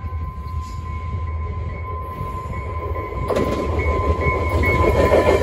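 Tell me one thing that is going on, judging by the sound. A train rumbles toward the listener along the tracks, growing steadily louder.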